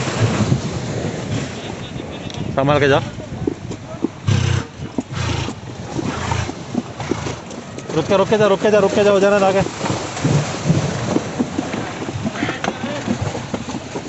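A horse's hooves clop on pavement.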